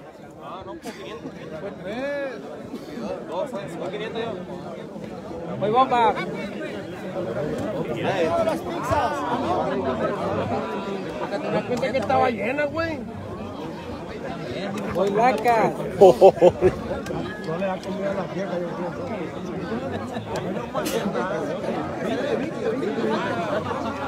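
A large outdoor crowd chatters and shouts.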